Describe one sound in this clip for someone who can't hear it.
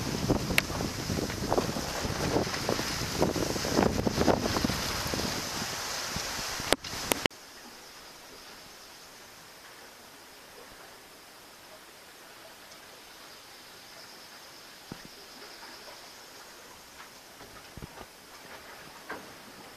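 Waves splash and rush against a sailing boat's hull.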